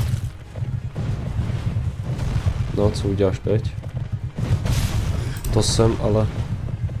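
A horse's hooves pound heavily on the ground.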